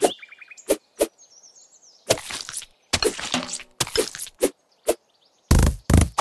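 Slicing sound effects play in a mobile game as a knife cuts through objects.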